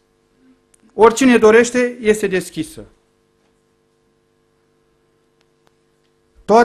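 A middle-aged man speaks with emphasis into a microphone.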